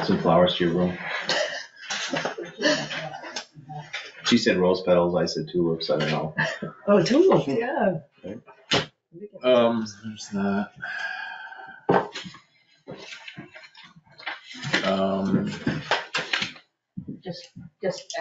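A middle-aged man talks calmly over a meeting microphone.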